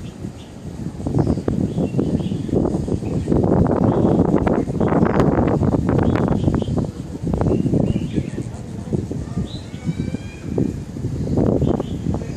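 Wind gusts roar outdoors, buffeting the microphone.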